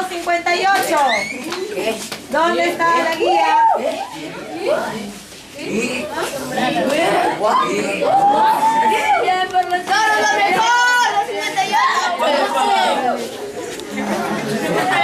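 A crowd of young people chatters and calls out loudly nearby.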